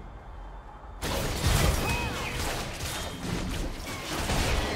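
Game spell blasts and hits crackle and boom in a fast fight.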